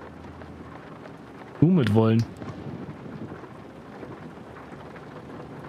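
A man talks quietly into a close microphone.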